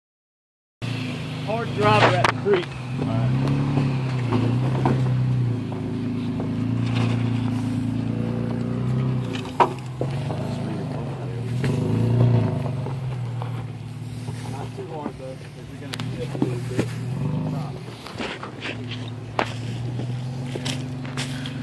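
An engine idles and revs unevenly as a vehicle crawls over rocks.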